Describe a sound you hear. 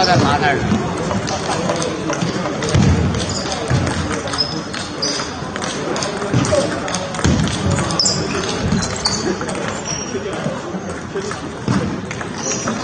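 A table tennis ball clicks quickly back and forth off paddles and a table.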